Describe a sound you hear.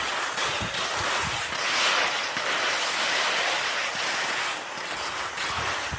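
Skis scrape over crusted snow.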